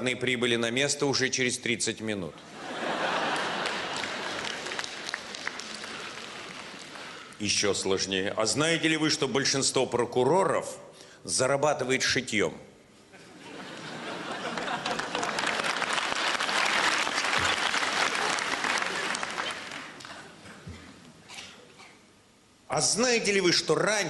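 An elderly man speaks expressively into a microphone on a stage.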